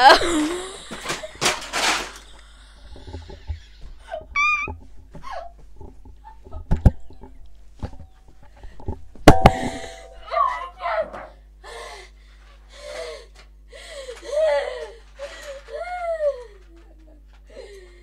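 A young girl laughs and talks excitedly into a microphone.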